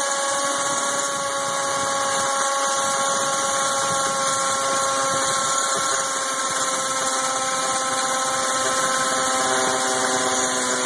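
A power drill whirs steadily, drilling into metal.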